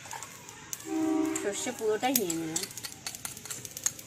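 A metal spoon scrapes and clinks against a small bowl.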